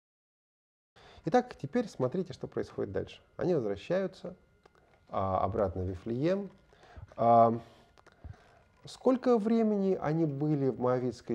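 A man speaks calmly into a microphone, as if lecturing.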